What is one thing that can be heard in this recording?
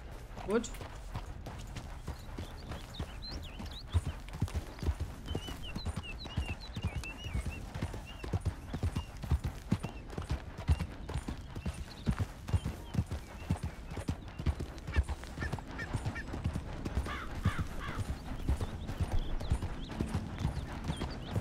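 A horse's hooves thud steadily on a dirt trail.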